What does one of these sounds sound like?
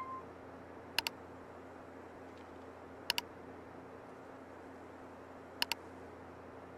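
A computer mouse double-clicks sharply several times.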